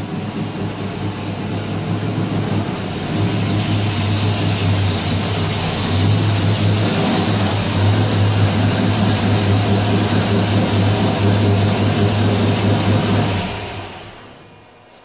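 A car engine rumbles loudly as the car drives in, then shuts off.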